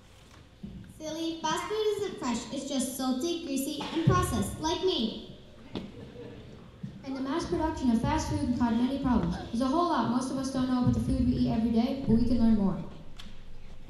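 A child speaks loudly through a microphone and loudspeakers in a large echoing hall.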